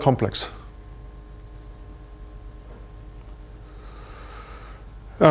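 A man speaks calmly, heard from a distance in an echoing hall.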